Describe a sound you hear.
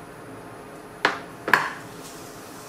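Raw meat slaps into a hot pan.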